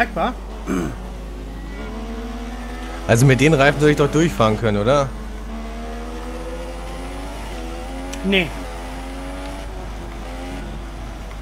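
A racing car engine whines loudly, rising in pitch as it speeds up and dropping with each gear change.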